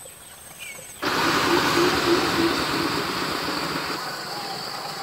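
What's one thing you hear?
A bird calls loudly and steadily close by.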